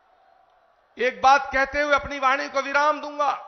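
An elderly man speaks with animation through a microphone and loudspeakers.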